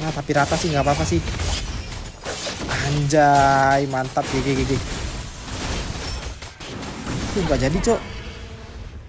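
Magic blasts and clashing blows crash in a fast fight.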